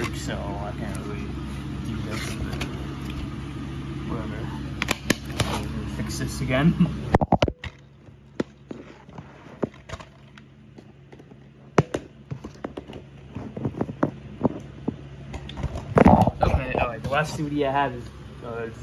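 A plastic disc case clicks and rattles as hands handle it.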